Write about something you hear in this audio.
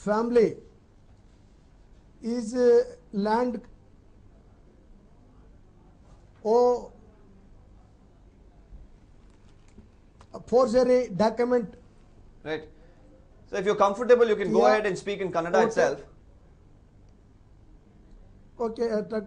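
A man speaks in short, halting bursts through a microphone, with pauses between phrases.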